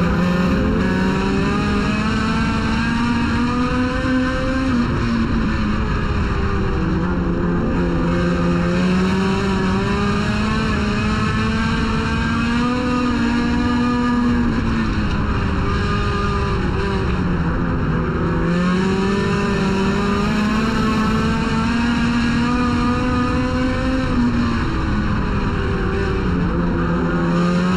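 A race car engine roars loudly up close, its pitch rising and falling as the car speeds up and slows.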